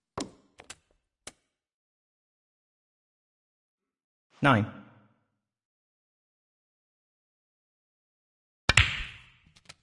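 A snooker cue strikes a ball with a sharp click.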